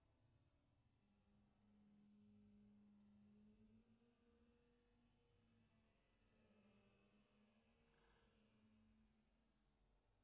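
A young woman hums a low, steady note softly and close to a microphone.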